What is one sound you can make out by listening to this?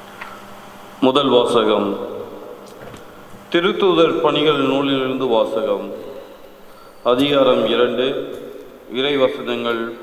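A middle-aged man reads aloud calmly through a microphone in an echoing room.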